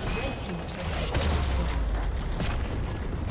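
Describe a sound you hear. A stone tower explodes with a deep rumbling blast.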